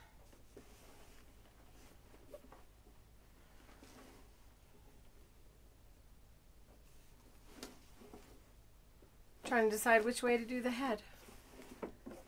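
Hands rub and rustle cloth.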